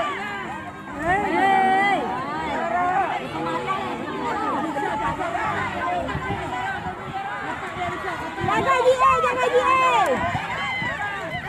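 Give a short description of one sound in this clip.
A crowd of women cheers and calls out nearby.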